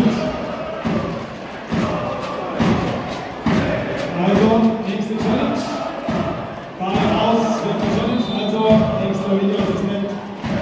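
A large crowd chants and sings loudly in an echoing hall.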